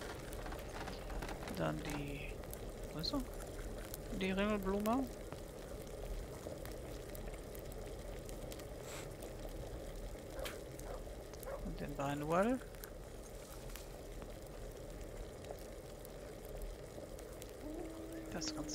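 Water bubbles in a pot over a fire.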